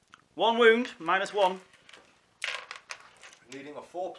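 Dice rattle and clatter in a plastic bowl.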